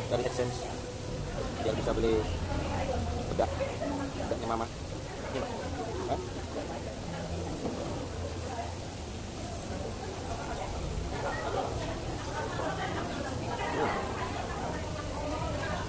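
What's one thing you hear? Plates clink and food rustles as people eat by hand.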